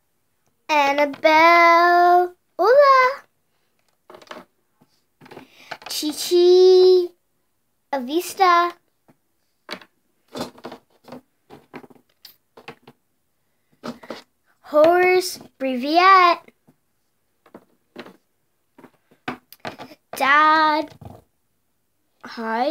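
A small plastic toy taps on a table.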